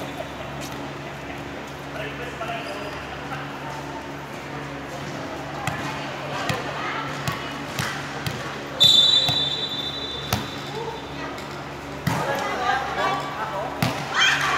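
A volleyball is struck with dull thuds in a large echoing hall.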